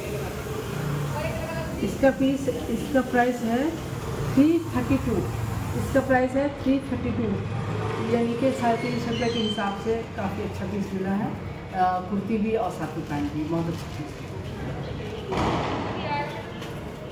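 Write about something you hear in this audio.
A woman talks calmly and close by.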